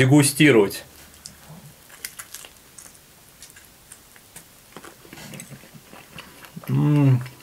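A man chews food with small smacking sounds.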